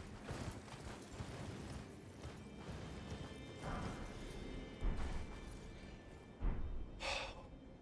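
Hooves thud softly on snowy ground.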